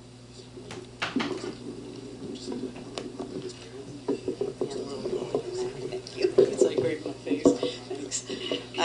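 A man speaks into a microphone in an echoing room.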